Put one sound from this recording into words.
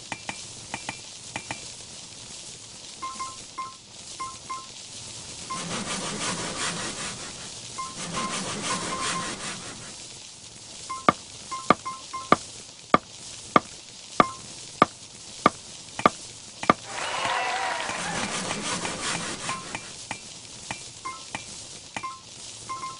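Short bright chimes ring again and again as items are collected.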